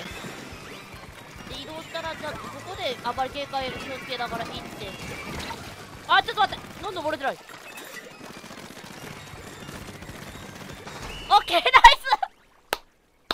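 Electronic game sound effects splash and pop.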